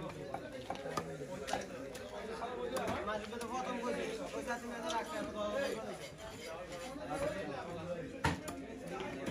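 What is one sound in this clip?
A knife blade knocks against a wooden chopping block.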